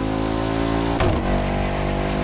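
A W16 hypercar engine upshifts with a brief cut in its roar.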